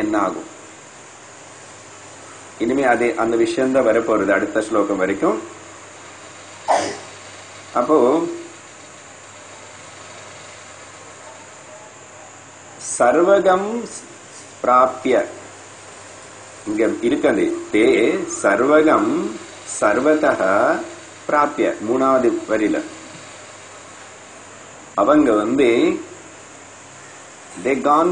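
An elderly man speaks calmly into a close microphone, with pauses between phrases.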